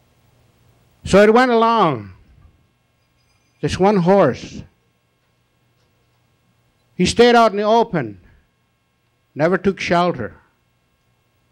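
A man sings loud drawn-out phrases into a microphone, with pauses between them.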